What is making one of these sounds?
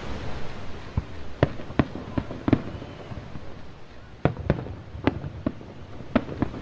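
Fireworks burst with sharp, booming bangs in the distance.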